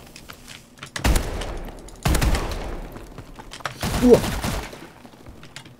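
Gunfire bursts out in loud, sharp volleys.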